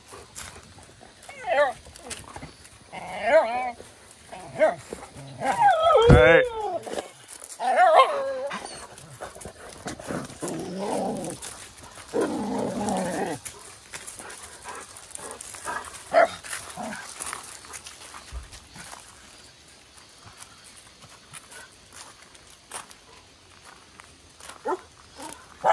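Dog paws crunch on gravel.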